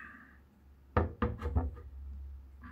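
A can knocks down on a table.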